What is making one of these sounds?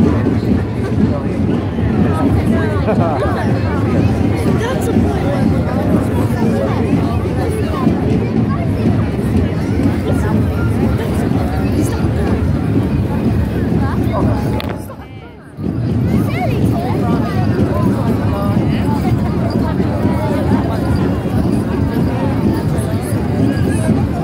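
A large outdoor crowd chatters and murmurs all around.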